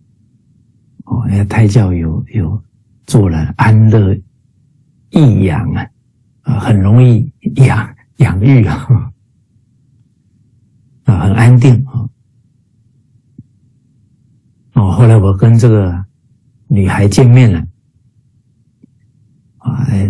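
A middle-aged man speaks warmly in short phrases over an online call.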